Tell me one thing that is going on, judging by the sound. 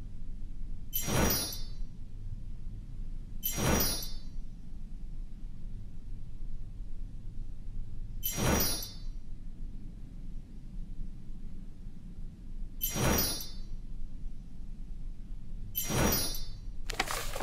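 Bright chimes ring out as game items are found.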